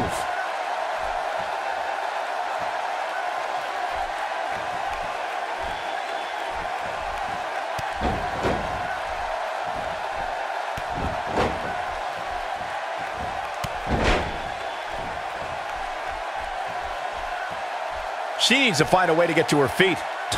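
A large crowd murmurs and cheers steadily in an arena.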